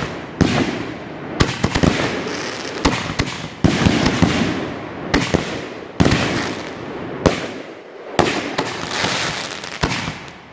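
Fireworks crackle and sizzle after each burst.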